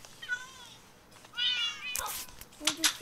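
Cats meow nearby.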